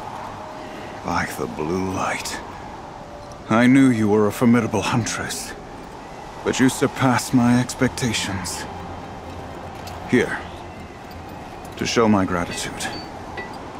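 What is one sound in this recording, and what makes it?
An older man speaks warmly and slowly.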